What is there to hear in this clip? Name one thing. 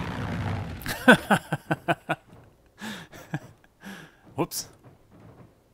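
A small plane crashes into the ground with a loud bang and crunching.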